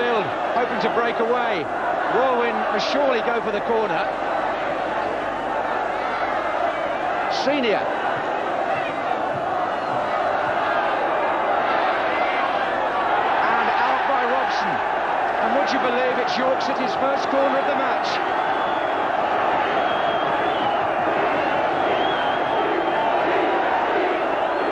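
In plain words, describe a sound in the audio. A large crowd roars and cheers steadily outdoors.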